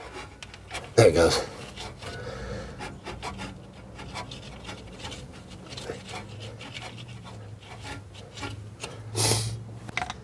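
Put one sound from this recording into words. Metal tools click and scrape against an engine.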